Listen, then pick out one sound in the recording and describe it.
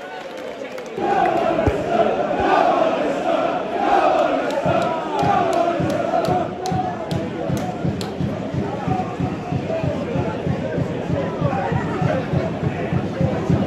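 A football crowd chants in a rhythm from across an open stadium.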